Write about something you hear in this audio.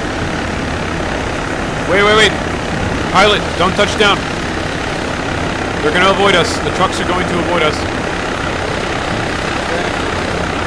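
A helicopter's rotor drones steadily overhead.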